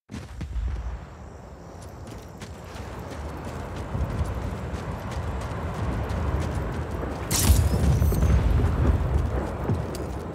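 Footsteps run quickly over dirt and concrete.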